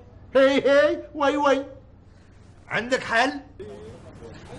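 A middle-aged man speaks loudly and with animation.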